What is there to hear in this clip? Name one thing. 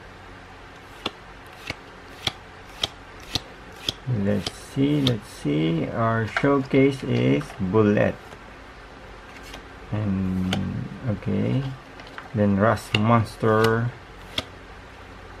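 Cards snap and click as they are flipped through a deck.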